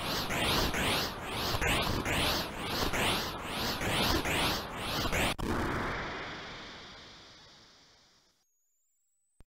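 Electronic game sound effects warble and buzz with a rapidly rising and falling pitch, then fade into a hiss.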